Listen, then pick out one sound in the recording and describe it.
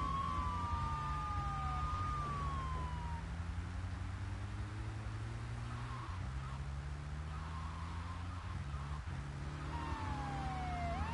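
A car engine hums steadily as a vehicle drives.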